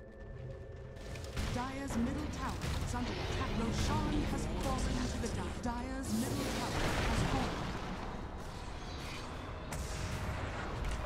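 Magic spells whoosh and burst in a fantasy game battle.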